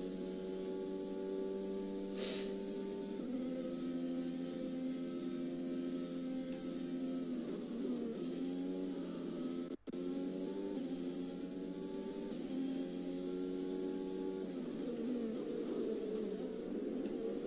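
A Formula One car engine screams at high revs.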